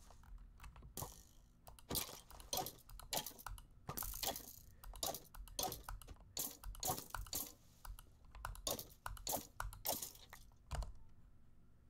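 A sword strikes a skeleton with quick thuds and clicks.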